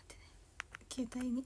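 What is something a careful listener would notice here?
A young woman speaks briefly and softly, close to a microphone.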